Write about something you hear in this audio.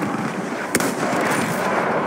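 A rifle bolt clicks during a reload.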